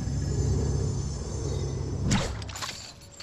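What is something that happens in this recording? Wind rushes past a game character gliding down through the air.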